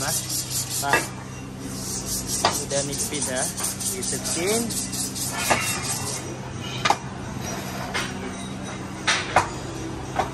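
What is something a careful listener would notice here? Metal brake discs clank as they are set down on a steel table.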